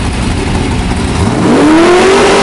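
An engine revs up sharply.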